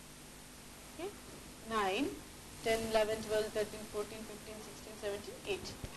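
A woman speaks calmly and closely, as if teaching.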